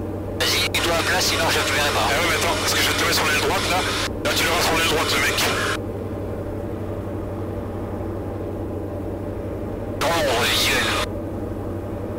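A man talks over a crackly headset intercom.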